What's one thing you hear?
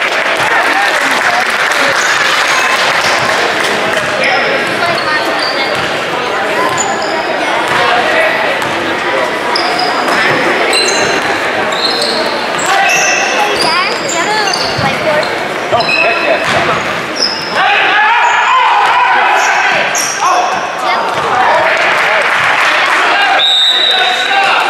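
A crowd of spectators murmurs and cheers in a large echoing gym.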